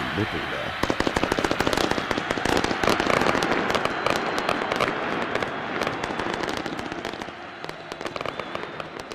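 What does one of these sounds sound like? Fireworks crackle and pop rapidly in a large stadium.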